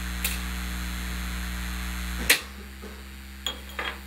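A television knob clicks.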